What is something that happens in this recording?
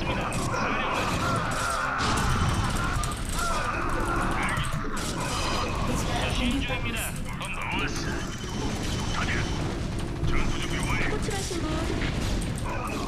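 Rapid gunfire rattles in a loud battle.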